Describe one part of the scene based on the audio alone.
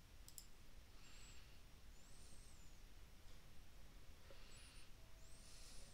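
Magical spell sound effects chime and shimmer in a video game.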